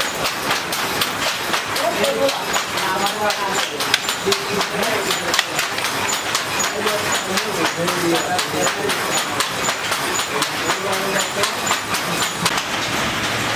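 A wooden hand loom clacks in a quick, steady rhythm.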